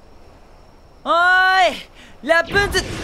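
A young man calls out loudly.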